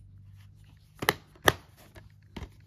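A plastic case snaps shut with a click.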